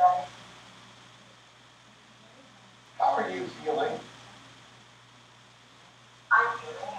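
A man speaks in short bursts in a quiet room.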